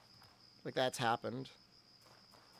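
A young man speaks briefly with animation into a close microphone.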